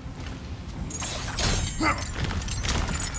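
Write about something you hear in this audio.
A glass-like crystal shatters with a sharp crack.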